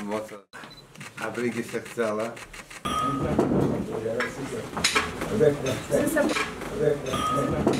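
An elderly man speaks warmly nearby.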